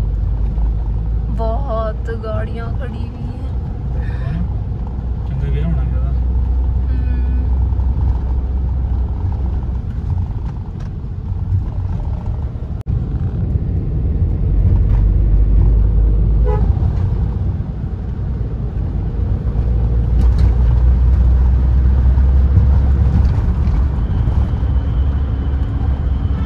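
A car engine hums and tyres rumble steadily on the road.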